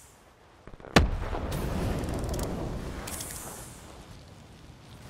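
A large gunshot booms and echoes away.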